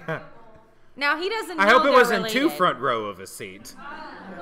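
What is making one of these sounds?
Several adults laugh together loudly.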